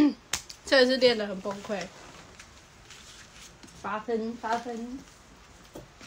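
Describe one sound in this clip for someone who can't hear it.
A young woman speaks brightly and close up.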